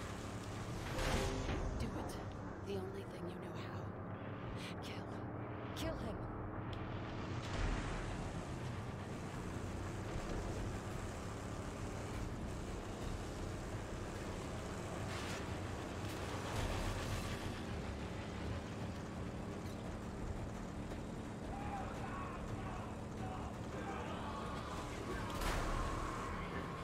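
Vehicles crash and thud against each other.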